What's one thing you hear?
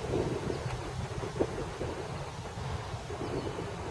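A golf club brushes the grass in a practice swing.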